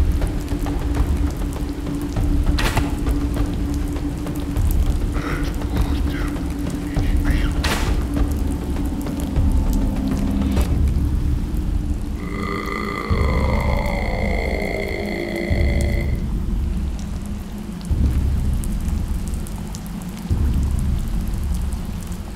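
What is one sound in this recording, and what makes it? Fire roars and crackles steadily.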